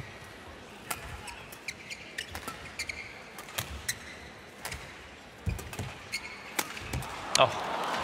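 Badminton rackets strike a shuttlecock in a large indoor arena.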